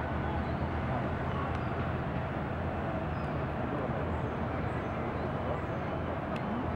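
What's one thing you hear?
Wind blows steadily across an open outdoor space.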